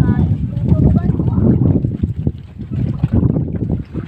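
Water laps against a wooden outrigger boat's hull.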